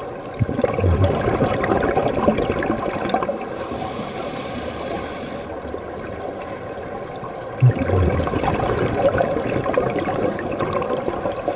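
Scuba divers breathe out, with bubbles gurgling and rushing underwater.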